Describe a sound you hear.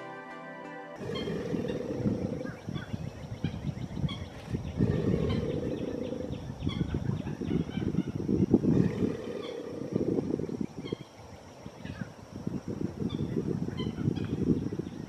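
An alligator bellows with a deep, rumbling growl.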